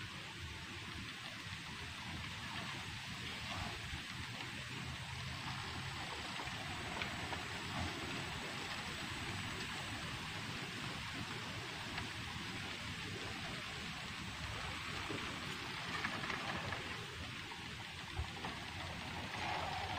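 Water laps gently outdoors.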